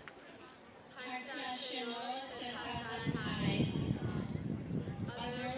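A young woman speaks through a microphone and a loudspeaker outdoors.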